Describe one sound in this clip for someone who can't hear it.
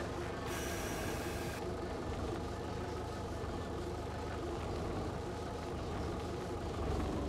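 A heavy engine rumbles steadily as a vehicle drives over rough ground.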